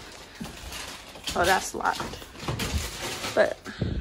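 A refrigerator door opens with a soft suction pop.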